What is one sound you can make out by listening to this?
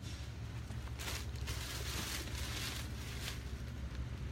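Clothes rustle on hangers.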